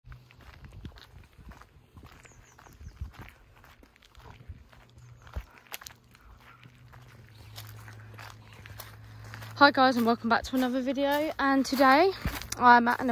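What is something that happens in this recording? Footsteps crunch on gravel and broken pavement.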